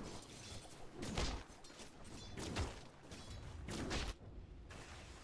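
Magic spells whoosh and crackle in short bursts.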